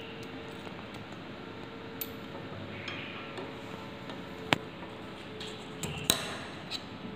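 Metal weights clink softly as they are hung on a spring.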